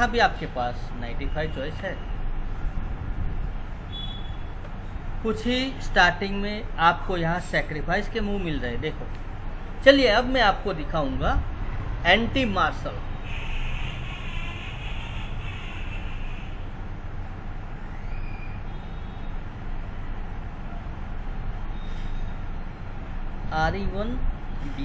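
An older man talks calmly into a microphone, heard close.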